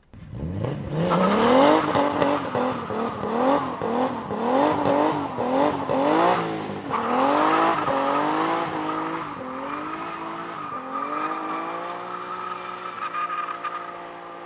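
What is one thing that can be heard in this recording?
Tyres squeal as they spin on asphalt.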